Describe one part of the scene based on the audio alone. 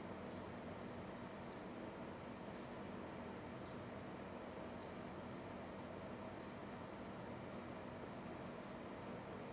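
Meat sizzles softly in a hot pan.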